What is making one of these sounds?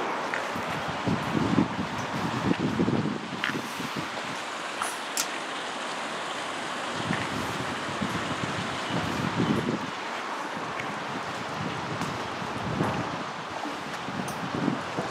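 Footsteps thud on a metal grating walkway.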